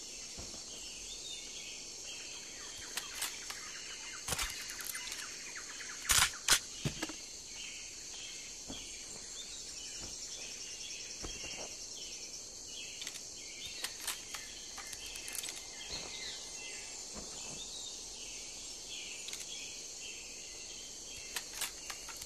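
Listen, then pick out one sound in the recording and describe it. Leaves and tall grass rustle as someone pushes through them.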